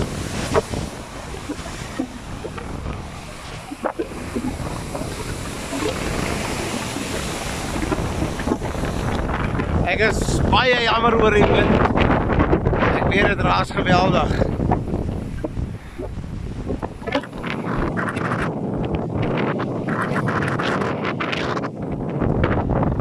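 Ocean waves surge and crash against a pier's pilings outdoors.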